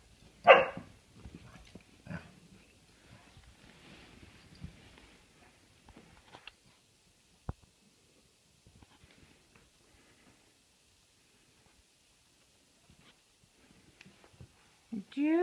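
A puppy whines in short high cries.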